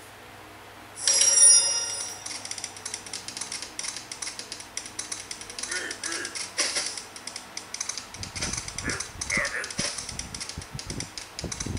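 Cheerful game music and sound effects play from a phone's small speaker.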